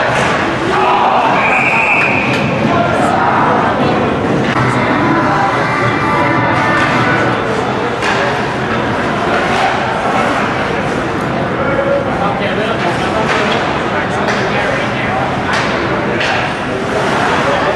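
Sticks clack against a puck.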